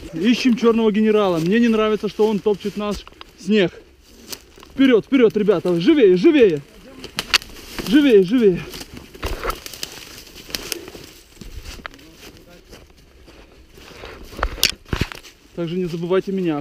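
Footsteps crunch through snow and twigs.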